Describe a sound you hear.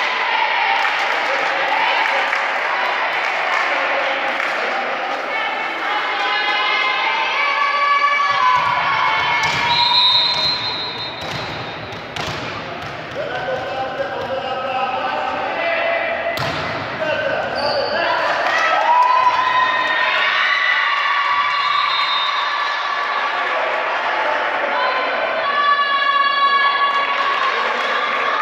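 Young women shout and call out to each other in a large echoing hall.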